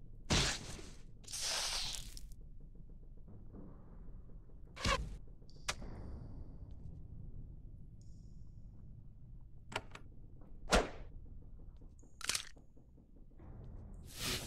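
Game combat sounds of sword strikes and hits ring out in short bursts.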